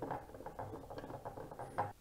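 A screwdriver turns a screw.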